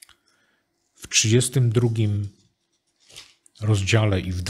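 A middle-aged man reads out calmly into a microphone.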